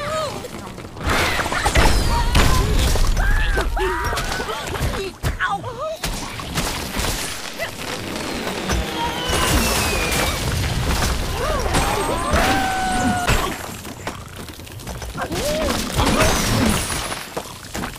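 Wooden and stone blocks crash and tumble.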